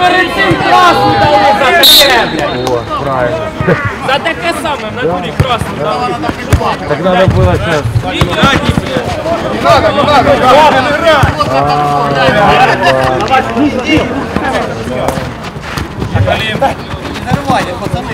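Young men shout to each other across an outdoor pitch.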